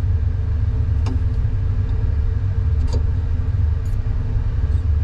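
Metal tweezers tap and scrape lightly against a metal tray.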